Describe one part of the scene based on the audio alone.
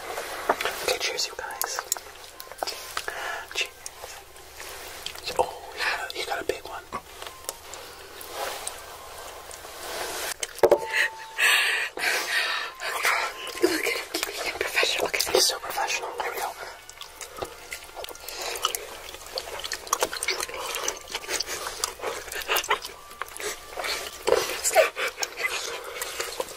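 People chew and slurp food loudly and wetly, close up.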